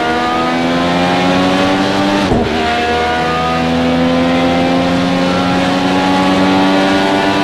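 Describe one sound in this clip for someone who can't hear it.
A racing car engine roars at high revs.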